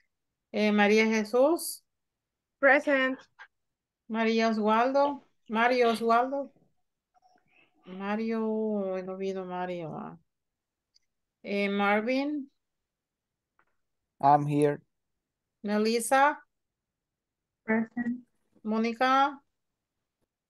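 A woman speaks clearly and with animation over an online call.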